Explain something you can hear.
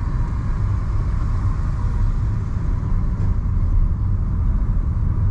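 Car traffic rumbles steadily on a city street.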